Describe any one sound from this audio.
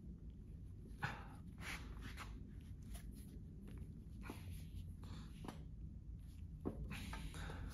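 A plastic charger handle clicks and rattles in a person's hands.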